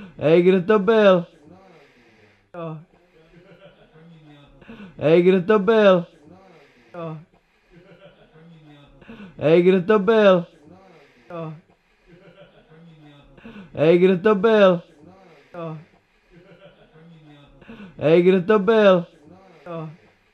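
A young man retches and gags loudly, close by, in repeated heaving bursts.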